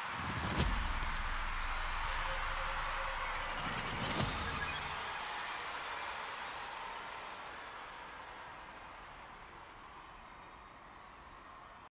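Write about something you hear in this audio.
A large crowd cheers and applauds, then slowly fades away.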